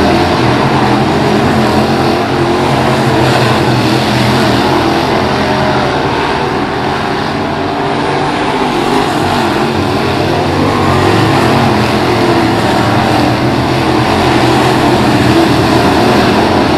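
Engines rise and fall in pitch as cars speed past close by.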